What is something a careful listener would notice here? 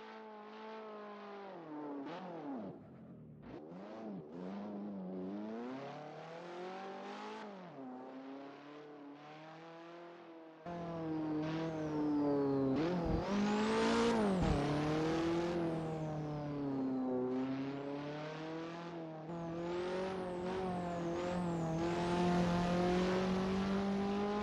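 A racing car engine revs and roars, rising and falling in pitch as the car shifts gears.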